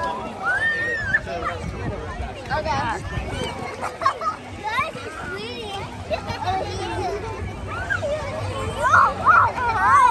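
A woman talks encouragingly close by.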